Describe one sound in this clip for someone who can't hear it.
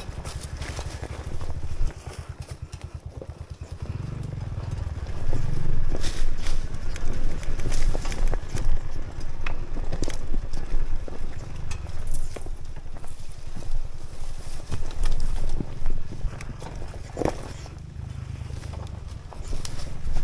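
Tyres crunch and rattle over stones and dry brush.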